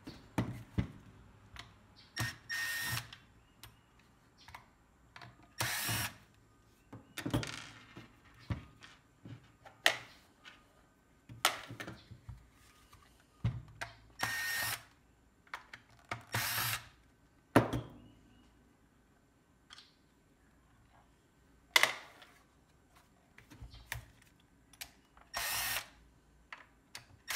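Plastic parts click and clatter as they are handled.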